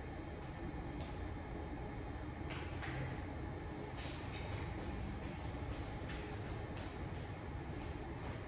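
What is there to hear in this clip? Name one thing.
A dog's claws tap and click on a hard floor.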